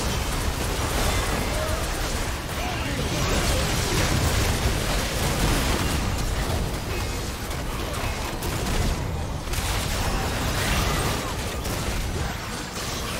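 Game spell effects whoosh, crackle and burst in a busy battle.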